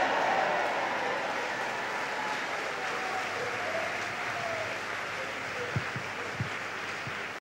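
A large crowd sings and cheers together in an echoing hall.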